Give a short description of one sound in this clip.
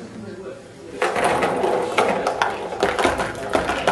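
Small balls roll and clatter through a cardboard chute.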